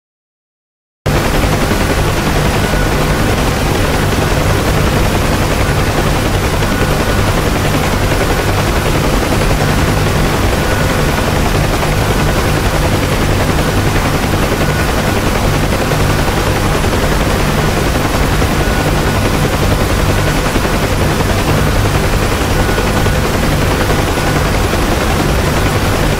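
A helicopter engine and rotor drone loudly and steadily from inside the cabin.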